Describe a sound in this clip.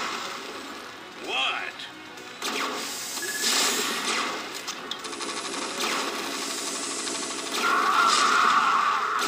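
Explosions burst and boom in a game.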